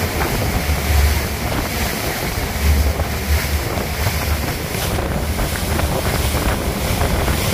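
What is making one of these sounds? A boat's engine rumbles steadily.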